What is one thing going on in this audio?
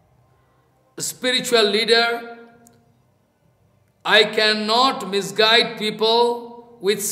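An elderly man speaks slowly and calmly close to a microphone.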